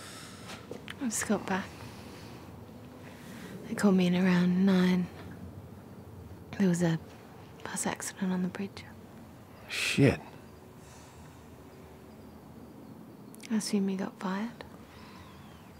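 A woman speaks quietly and softly up close.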